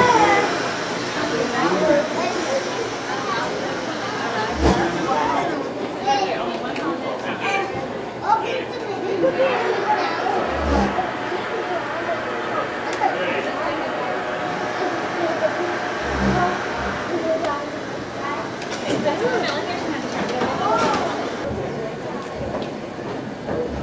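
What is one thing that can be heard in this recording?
A crowd of men, women and children chatters nearby in an echoing hall.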